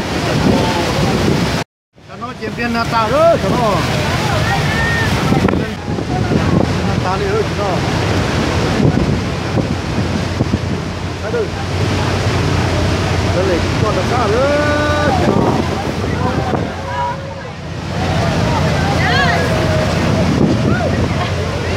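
A waterfall roars loudly nearby.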